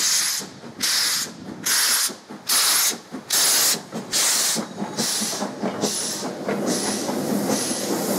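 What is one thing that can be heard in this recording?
A steam locomotive chuffs loudly in rhythmic bursts of exhaust.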